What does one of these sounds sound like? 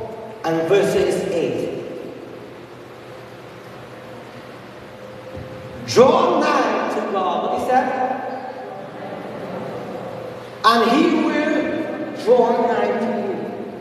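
A man speaks into a microphone, heard through loudspeakers in a large echoing hall.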